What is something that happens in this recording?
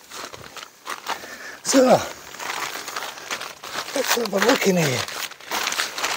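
Tent fabric rustles as a man crawls across a tent floor.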